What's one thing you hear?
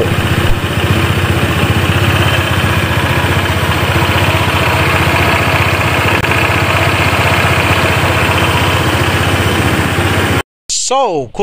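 A motor scooter engine runs steadily close by.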